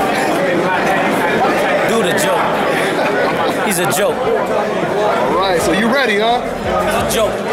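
A crowd murmurs and chatters in a room with some echo.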